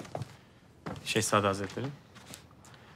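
A man answers respectfully, close by.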